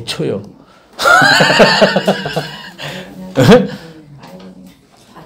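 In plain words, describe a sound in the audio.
A middle-aged man laughs heartily.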